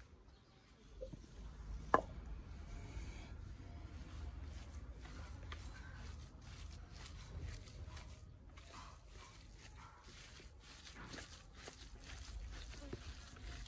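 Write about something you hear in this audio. Hands squish and knead minced meat.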